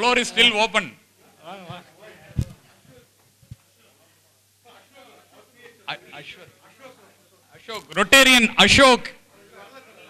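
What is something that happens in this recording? A man speaks loudly through a loudspeaker, with pauses.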